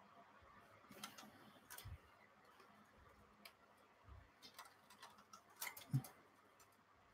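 Plastic model parts click and rattle softly as they are handled.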